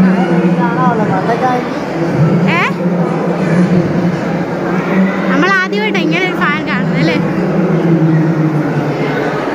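A crowd of men and women chatter loudly in a large echoing hall.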